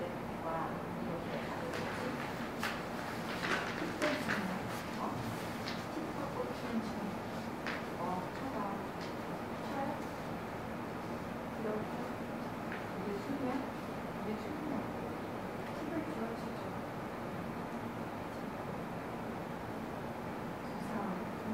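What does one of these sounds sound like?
A young woman reads aloud calmly into a microphone.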